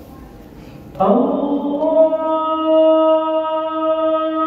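A man's chant rings out over a loudspeaker through a large echoing hall.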